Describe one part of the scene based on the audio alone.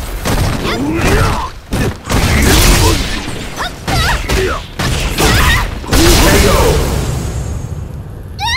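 Punches and kicks land with heavy, rapid thuds.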